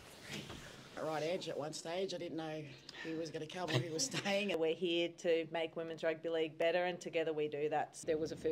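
A woman speaks calmly into a microphone, heard through a loudspeaker.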